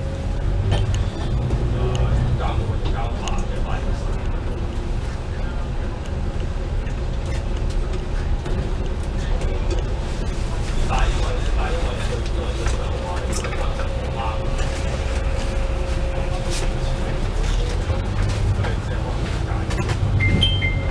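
A diesel double-decker bus engine rumbles under way.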